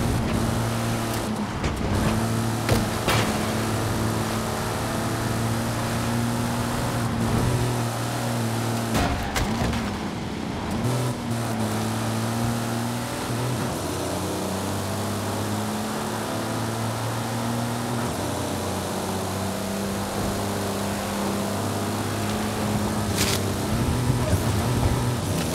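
A car engine roars at high revs, dropping briefly with each gear change.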